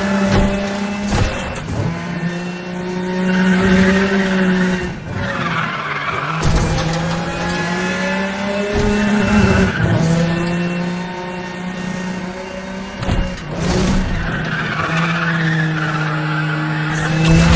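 A sports car engine roars at high revs, rising and dropping as gears shift.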